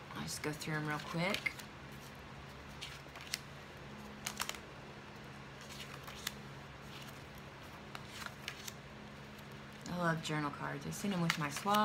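Paper cards tap and slide against each other as hands shuffle them.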